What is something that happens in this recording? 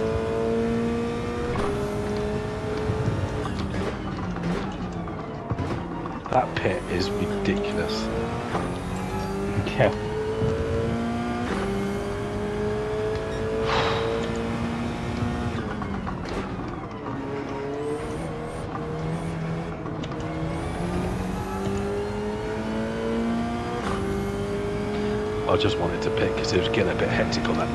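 A racing car engine roars, rising in pitch through the gears and dropping as it shifts and brakes.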